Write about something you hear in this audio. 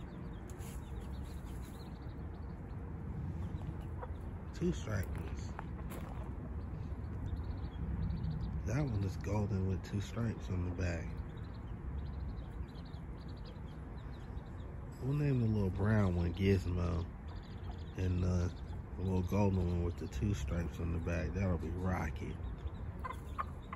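A hen clucks low and briefly.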